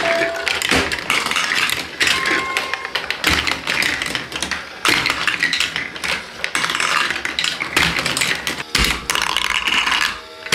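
Plastic marbles roll and rattle along toy tracks.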